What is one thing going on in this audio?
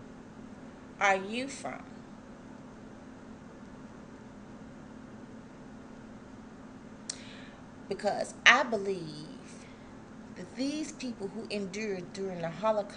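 A middle-aged woman speaks calmly close to the microphone, with long pauses.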